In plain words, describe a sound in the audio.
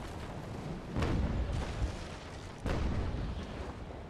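Cannons fire with deep booming blasts.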